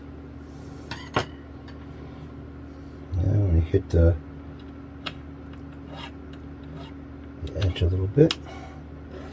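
Small metal tools click and tap lightly against a guitar neck.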